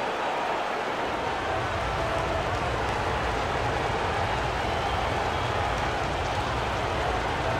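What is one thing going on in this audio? A basketball bounces repeatedly on a hardwood floor.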